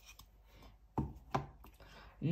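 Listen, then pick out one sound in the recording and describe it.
A small cardboard block clicks as it is lifted from a tray.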